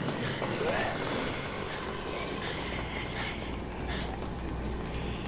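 Footsteps shuffle on concrete.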